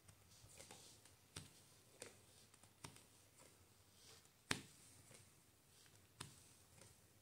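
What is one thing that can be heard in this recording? Playing cards slide and tap softly as they are laid down one by one.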